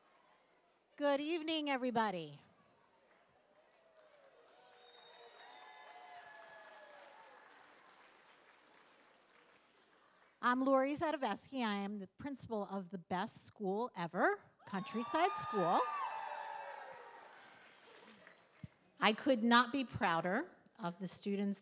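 A woman speaks animatedly into a microphone, heard through loudspeakers in a large echoing hall.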